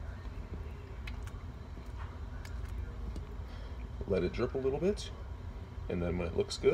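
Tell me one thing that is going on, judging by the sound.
Bread is pressed and dabbed into a wet mixture with soft squelching sounds.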